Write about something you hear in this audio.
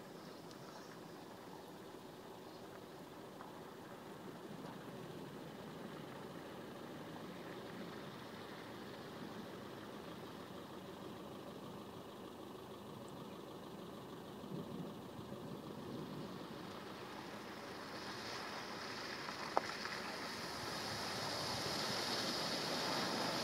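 A vehicle engine hums in the distance and grows louder as it approaches.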